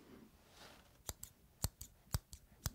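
Fingers snap close to the microphone.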